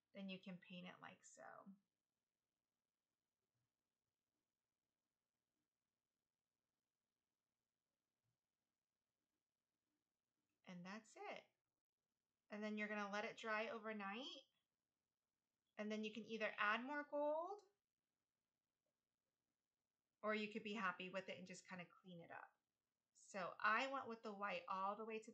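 A woman speaks calmly into a microphone, in short bursts with pauses.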